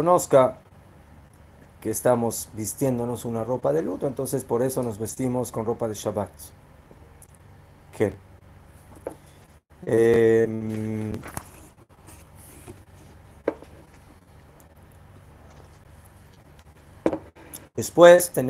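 An older man speaks calmly and close by, pausing between phrases.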